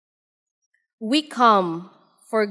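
A woman reads out calmly through a microphone.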